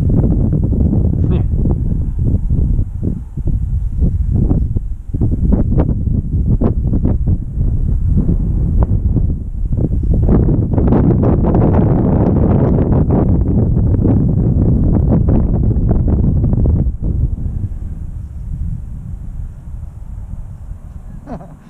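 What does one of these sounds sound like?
Strong wind buffets and roars outdoors.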